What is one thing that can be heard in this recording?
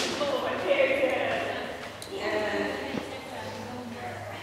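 A woman talks with animation to a dog in a large echoing hall.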